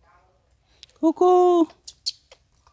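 A baby monkey squeals loudly, close by.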